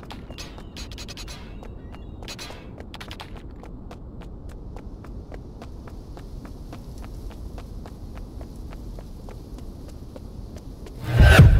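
Footsteps crunch through grass at a steady pace.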